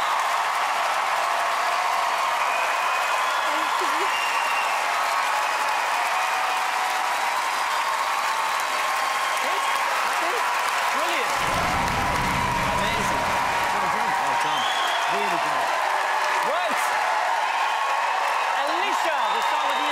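A large crowd cheers and applauds loudly in a big echoing hall.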